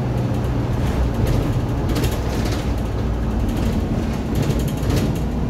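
A diesel city bus engine drones low, heard from inside the moving bus.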